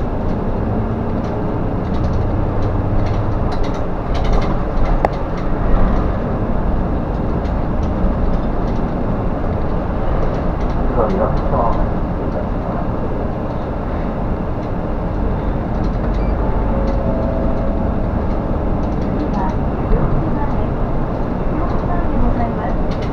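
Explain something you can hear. A bus engine rumbles steadily from inside as the bus drives along a street.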